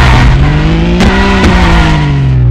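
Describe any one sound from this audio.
A car crashes into a barrier with a loud thud.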